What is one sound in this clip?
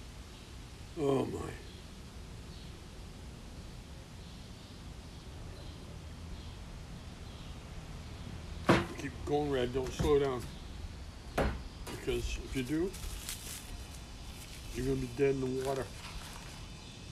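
An elderly man speaks briefly and calmly, close by.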